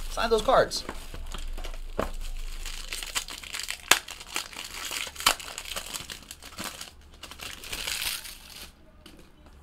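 Plastic wrapping crinkles and rustles as it is torn off.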